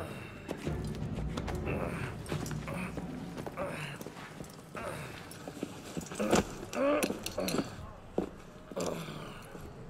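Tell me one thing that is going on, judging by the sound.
Men scuffle, with thuds and shuffling.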